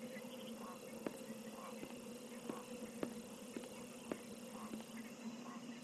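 Soft footsteps tap slowly on a hard floor.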